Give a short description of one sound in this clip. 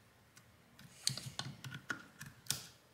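Metal pliers clack against plastic.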